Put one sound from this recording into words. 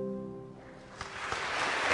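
Two women sing a held note through microphones in an echoing hall, and the note fades.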